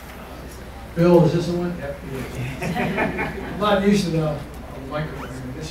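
A man speaks calmly through a microphone over a loudspeaker.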